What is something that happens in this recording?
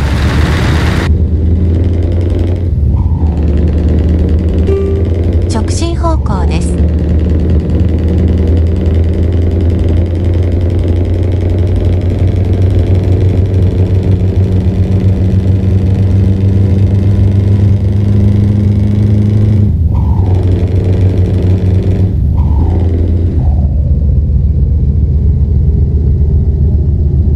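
A truck's diesel engine drones steadily, with gear shifts dipping the sound now and then.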